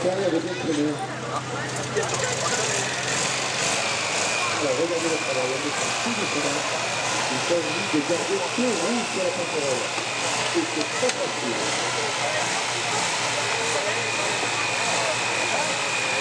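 The air-cooled flat-twin engine of a 2CV-based buggy labours under load as it climbs a dirt slope.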